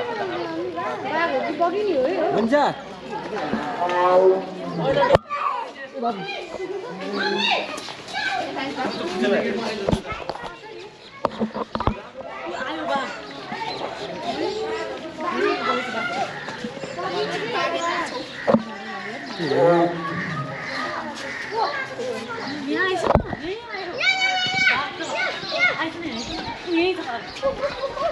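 A crowd of children and adults chatters and calls out nearby.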